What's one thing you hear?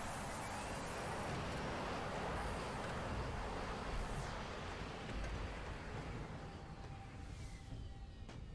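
A dropship's engines roar as it lowers itself to land.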